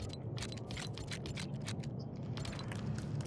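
Menu buttons click softly in quick succession.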